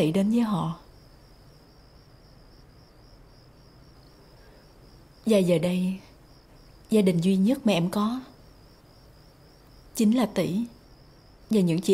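A young woman speaks softly in short phrases, close by.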